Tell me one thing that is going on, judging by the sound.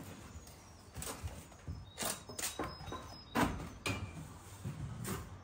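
Loose bricks knock and scrape against each other.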